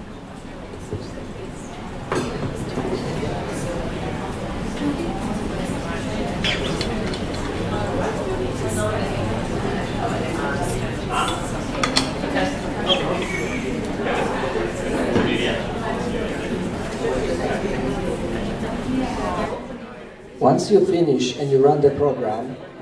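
A young man talks calmly through a microphone.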